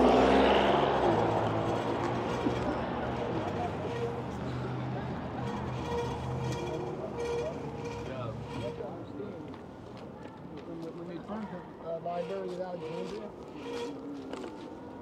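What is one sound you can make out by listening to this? Tyres of an electric bike roll over a concrete sidewalk.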